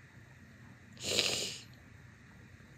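A young woman sighs loudly in her sleep, close by.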